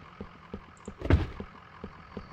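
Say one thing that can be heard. A cardboard box thumps as it is picked up.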